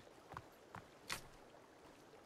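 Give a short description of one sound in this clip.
Footsteps tread softly on leafy ground.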